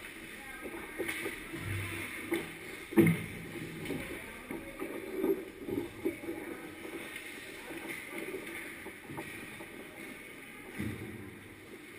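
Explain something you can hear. Hockey sticks knock and clack against the ice and puck.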